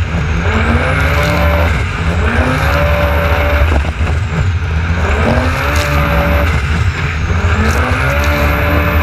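Water splashes and sprays hard against a speeding craft.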